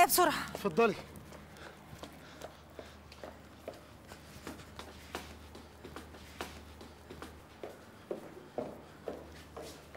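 Footsteps shuffle away on pavement.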